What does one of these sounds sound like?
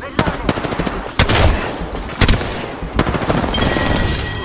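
Gunshots fire in sharp, loud bursts.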